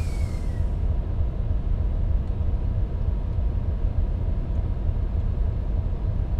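A train engine rumbles low and steady from inside the cab.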